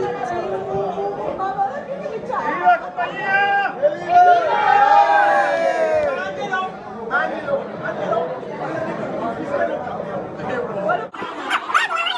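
A group of adult men and women sing a toast together, close by.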